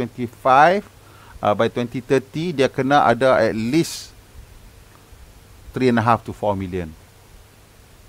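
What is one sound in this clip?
A man speaks with animation close to a headset microphone.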